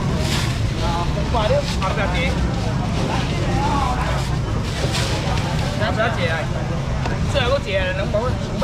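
A busy crowd murmurs and chatters nearby.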